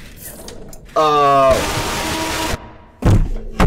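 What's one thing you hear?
A young man screams loudly into a microphone.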